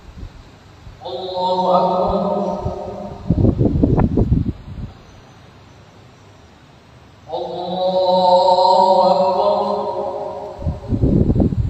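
A man chants loudly through a microphone in a large echoing hall.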